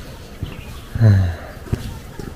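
A car chirps briefly as its locks are worked by a remote.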